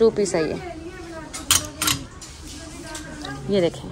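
A wooden hanger clacks against a clothes rail.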